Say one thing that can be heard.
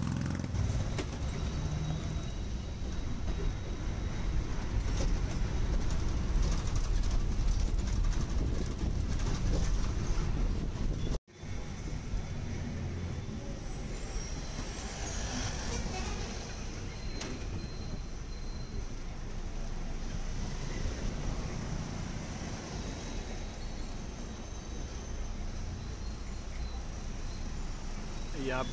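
Wind rushes past an open bus window.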